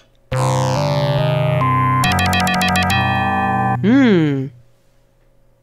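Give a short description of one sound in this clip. Retro computer game music plays a quick beeping jingle.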